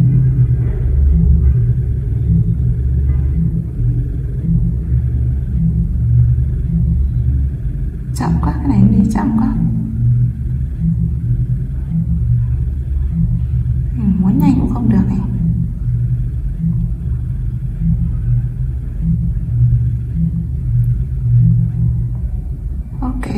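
A phone vibrates with a low, pulsing buzz.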